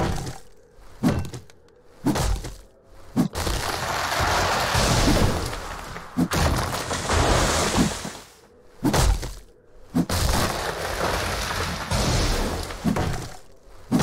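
An axe chops into wood with heavy thuds.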